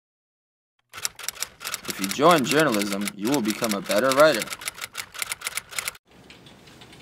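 Typewriter keys clack rapidly.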